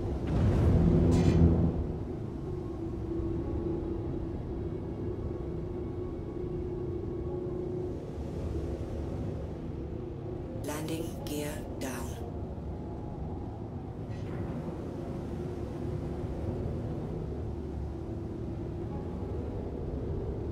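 A spacecraft engine hums low and steadily.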